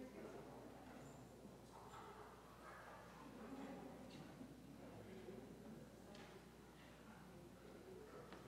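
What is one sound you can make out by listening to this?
An organ plays softly.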